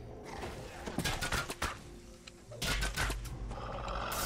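Blows strike a wolf in quick bursts.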